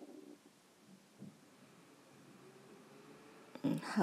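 A wooden rolling pin rolls over dough.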